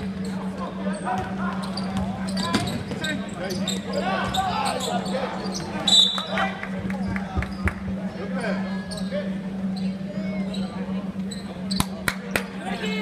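Spectators and players call out in a large echoing gym.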